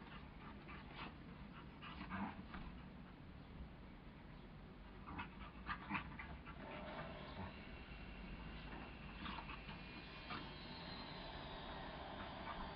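Two dogs scuffle and romp on grass.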